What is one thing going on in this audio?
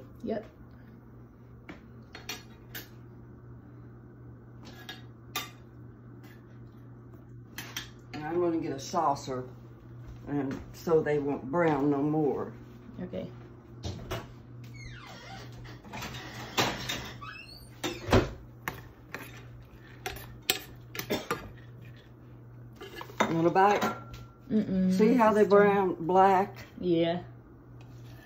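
A spoon scrapes and clicks against a frying pan.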